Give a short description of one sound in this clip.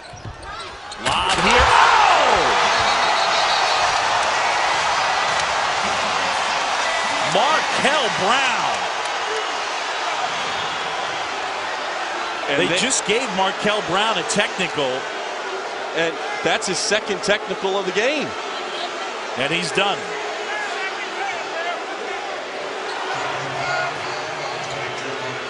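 A large arena crowd roars and cheers loudly.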